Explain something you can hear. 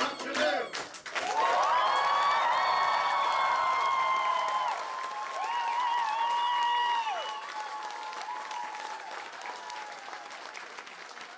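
A group of young men and women whoop and cheer loudly in a large echoing hall.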